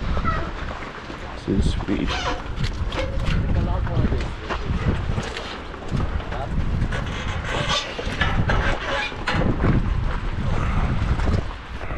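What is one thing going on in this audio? Bicycles clatter and knock against a metal rack.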